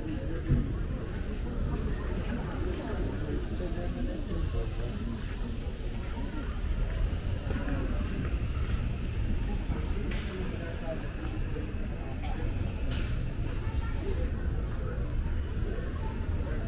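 Outdoor street noise with distant traffic hums steadily.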